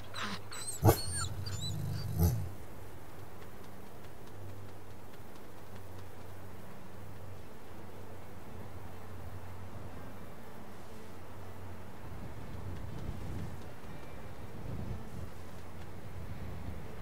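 A wolf's paws patter softly over grass.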